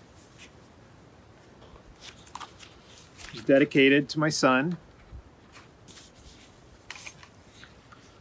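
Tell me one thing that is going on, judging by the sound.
Pages of a book turn with a soft rustle.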